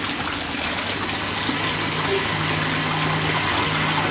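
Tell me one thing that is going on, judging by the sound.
Water bubbles and churns in a hot tub.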